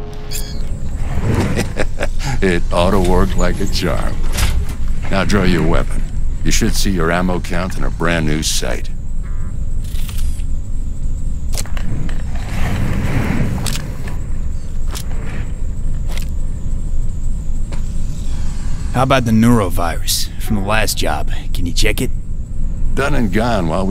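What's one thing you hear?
A man speaks calmly and with amusement, close by.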